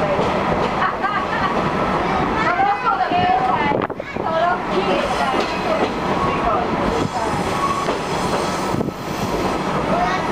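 Several people talk and chatter nearby indoors.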